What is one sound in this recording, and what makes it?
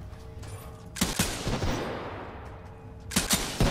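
A gun fires a loud shot that echoes.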